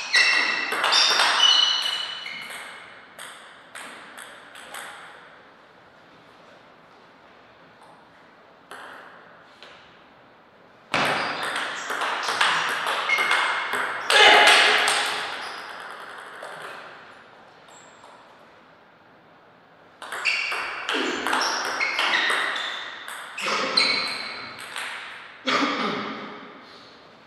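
A table tennis ball clicks quickly back and forth off paddles and the table.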